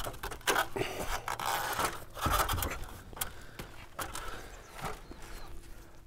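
A paintbrush scrubs against wooden boards.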